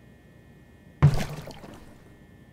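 A plastic box thumps as it is picked up.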